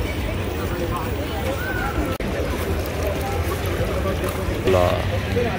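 A crowd of men and women chatter nearby and in the distance.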